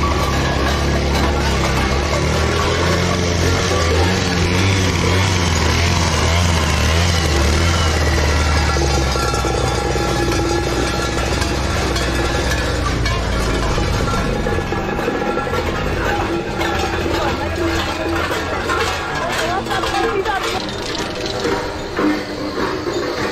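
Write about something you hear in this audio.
A crowd of men and women chatters along a street outdoors.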